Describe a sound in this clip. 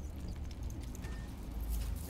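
A beaded chain rattles softly in a hand.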